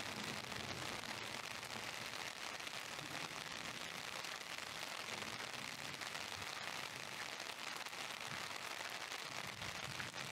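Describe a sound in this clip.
Steady rain falls and patters on wet pavement outdoors.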